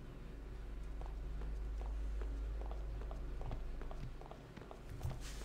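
Footsteps tap on a hard floor at an even pace.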